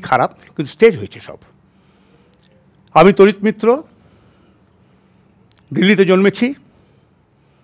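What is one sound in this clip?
An elderly man speaks expressively through a headset microphone, in short bursts with pauses.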